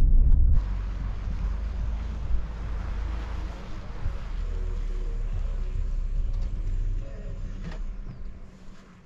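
A car engine rumbles as a vehicle drives up and stops.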